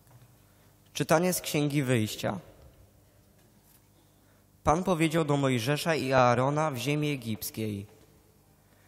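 A young man chants through a microphone in a large echoing hall.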